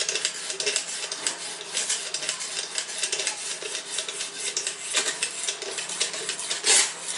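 A sharpening stone scrapes rapidly back and forth along a knife blade.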